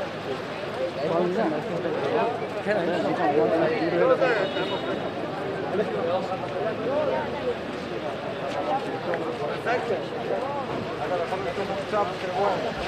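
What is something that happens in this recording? A crowd of men talks and calls out at once outdoors in the street.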